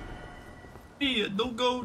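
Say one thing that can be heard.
A man talks into a microphone close by.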